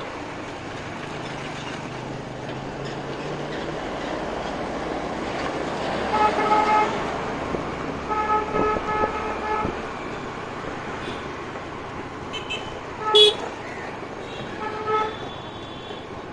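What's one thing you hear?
A motor scooter engine hums steadily while riding.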